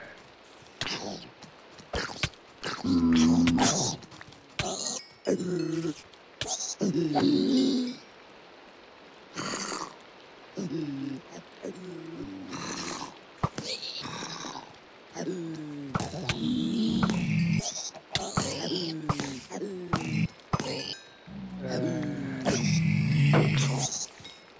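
Zombies groan and grunt close by.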